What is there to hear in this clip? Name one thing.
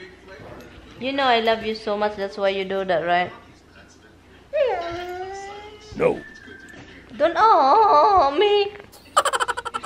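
A dog whines and howls in long, wavering cries.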